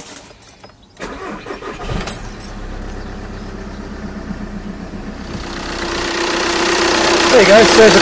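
A car engine idles with a steady hum, growing louder.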